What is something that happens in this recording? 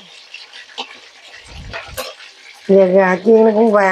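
A wooden spoon scrapes and stirs food in a metal pot.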